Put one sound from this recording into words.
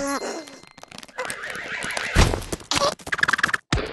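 Fruit thuds and rolls across a wooden floor.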